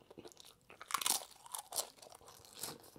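A young man crunches a chip loudly while chewing.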